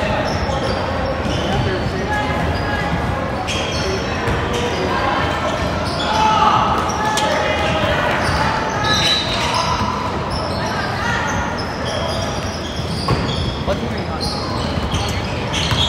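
Children shout and call out in a large echoing gym.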